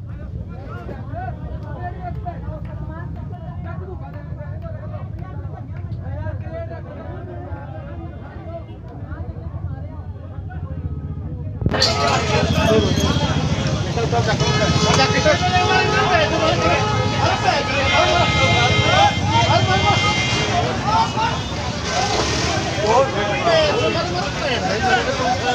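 A crowd of men shout and argue excitedly outdoors.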